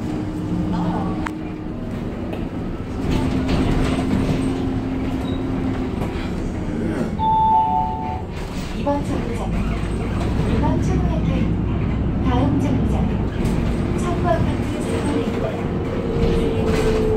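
A bus engine rumbles low and steadily.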